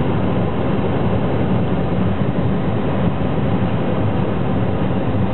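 Tyres rumble on a wet road.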